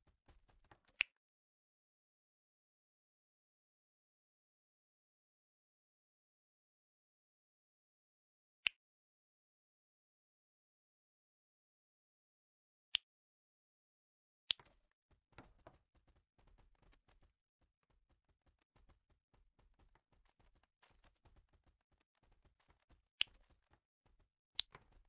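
A short, sharp game click sounds now and then.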